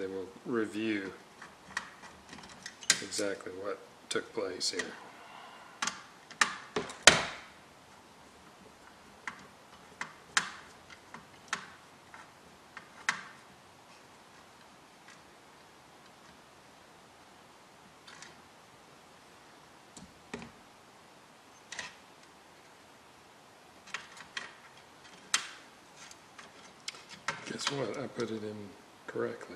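Tools tap and click against a metal chassis.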